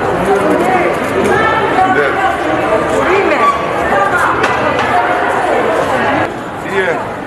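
Several people chat in the background.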